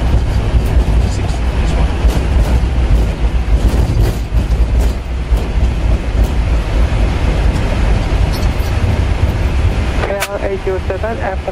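Aircraft engines rumble steadily with a deep roar.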